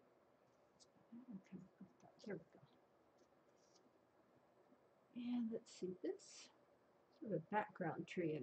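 A middle-aged woman talks calmly into a nearby microphone.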